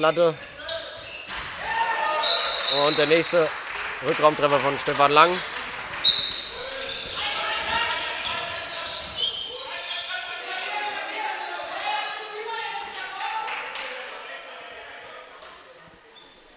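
Spectators murmur and cheer in a large echoing hall.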